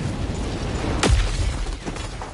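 A heavy metal pod slams into the ground with a deep thud.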